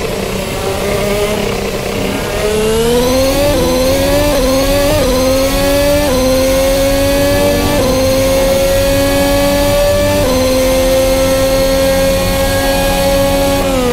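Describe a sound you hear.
A racing car engine revs hard, rising in pitch through each gear and dropping sharply at every gear change.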